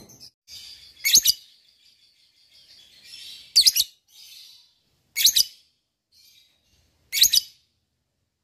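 A small parrot gives sharp, single shrill calls.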